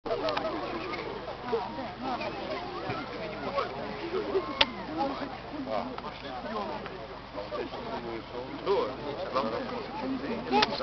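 A group of women sing together outdoors.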